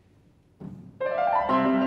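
A piano starts playing loudly.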